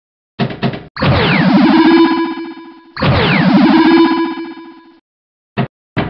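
An electronic tone sweeps down in a whooshing game effect.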